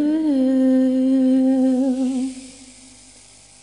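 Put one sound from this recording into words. A woman sings a long held note with vibrato into a microphone.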